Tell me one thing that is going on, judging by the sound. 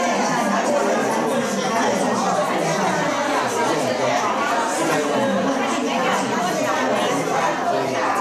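Many women chatter at once in a room that echoes a little.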